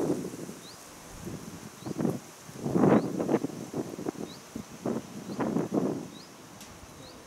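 Wind gusts blow across an open hilltop.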